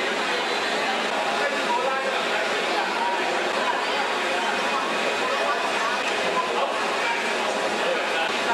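A crowd of people chatter nearby in a busy, noisy space.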